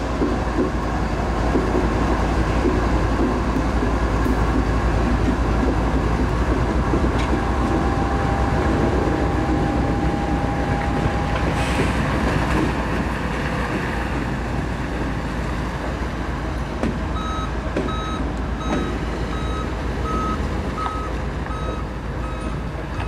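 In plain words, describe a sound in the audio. A diesel locomotive rumbles loudly close by and slowly moves away.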